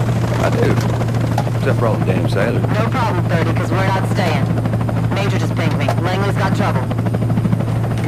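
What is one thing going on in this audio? A man speaks calmly over a radio.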